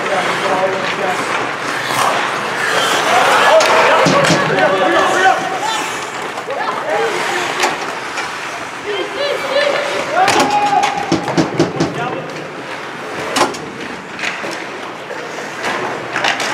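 Spectators talk and call out nearby in an echoing rink.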